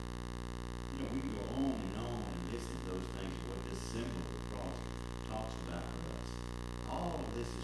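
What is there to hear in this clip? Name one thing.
An elderly man speaks calmly through a clip-on microphone.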